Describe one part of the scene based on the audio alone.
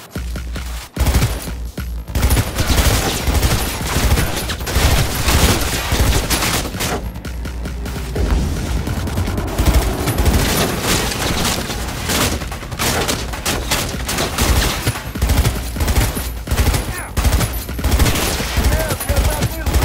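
Rapid machine gun fire rattles loudly.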